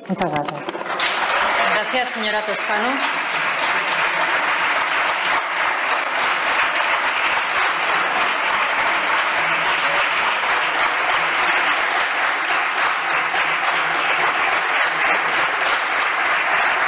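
A crowd applauds loudly and steadily.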